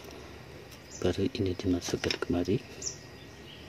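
A plastic spool clatters and knocks as it is handled.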